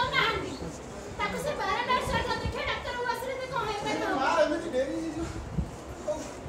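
A young man speaks loudly with animation in an echoing room.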